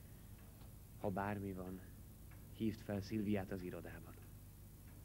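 A man speaks quietly and earnestly close by.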